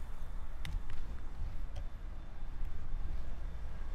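A car drives past nearby.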